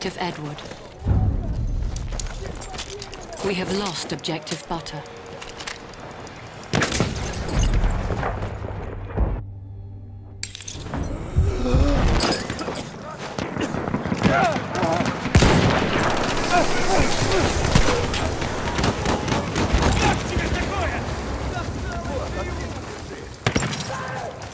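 Explosions boom heavily nearby.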